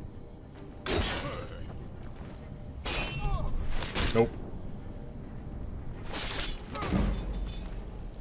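A blade strikes hard several times.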